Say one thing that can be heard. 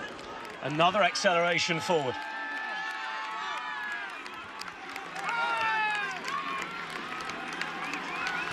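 A large crowd cheers, shouts and whistles close by.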